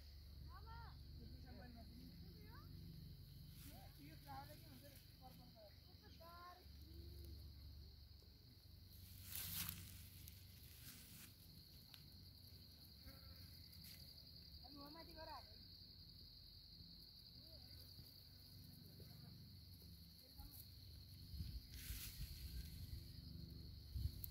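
Wind blows steadily outdoors, with gusts rustling the grass and leaves.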